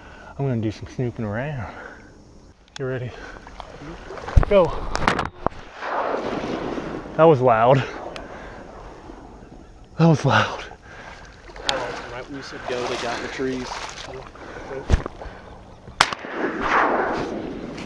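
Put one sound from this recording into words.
Water splashes as people wade through a marsh.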